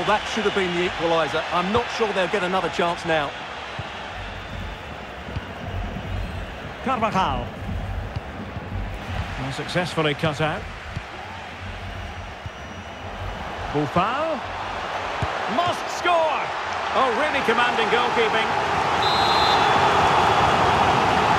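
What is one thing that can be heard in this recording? A stadium crowd murmurs steadily and swells into a loud roar near the end.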